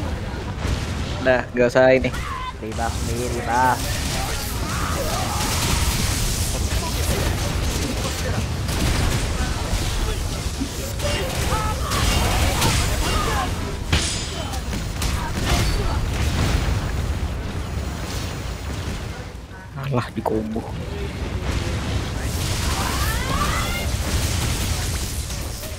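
Magic blasts burst and crackle.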